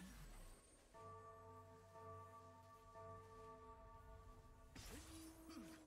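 A magical portal hums steadily.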